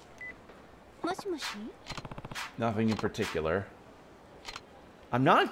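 A man talks calmly on a phone.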